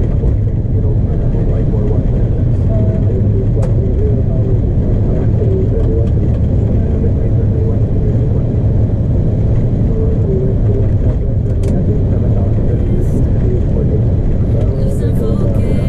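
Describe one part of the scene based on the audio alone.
Wheels rumble and thump over the runway.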